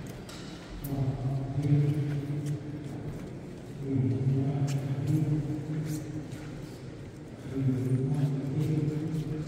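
Men's voices chant a liturgy, echoing through a large stone hall.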